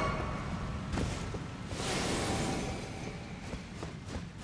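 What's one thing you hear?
Game footsteps thud softly on stone.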